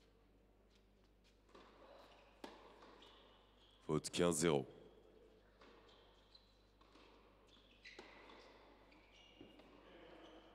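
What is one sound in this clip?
A tennis ball is struck with a racket several times in a rally.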